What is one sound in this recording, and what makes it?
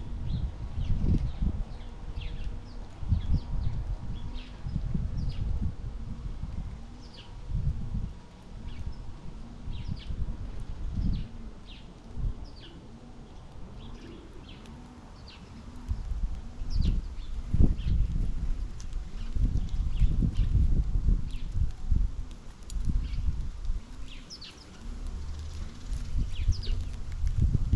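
Small birds chirp in short, high calls.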